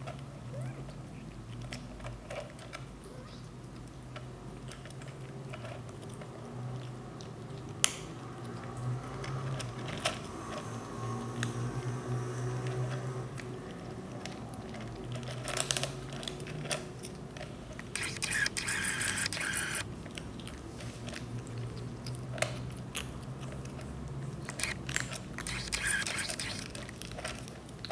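Kittens crunch and lick food with soft clicks close by.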